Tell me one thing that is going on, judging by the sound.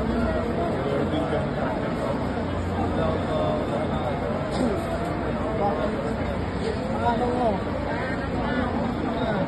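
A dense crowd of men and women talks and chants all at once, close by and outdoors.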